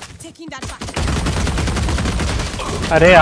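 Rapid gunfire rattles in a video game.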